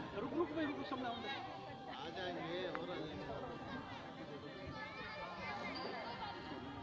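Several people talk and call out nearby, outdoors.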